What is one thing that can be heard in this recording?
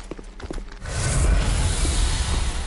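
Fire bursts with a whoosh.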